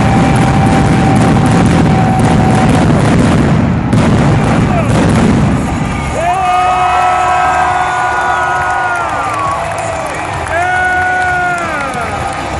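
A large crowd cheers and roars in a huge echoing arena.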